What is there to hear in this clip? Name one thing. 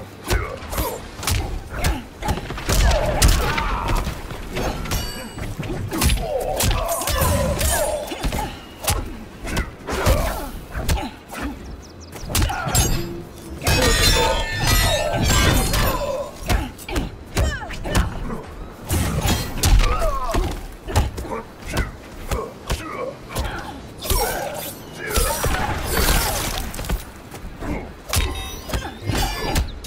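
Energy blades slash with sharp swooshing hisses.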